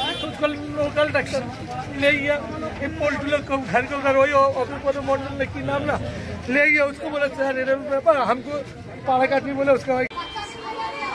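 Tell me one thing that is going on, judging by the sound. Several men argue loudly close by outdoors.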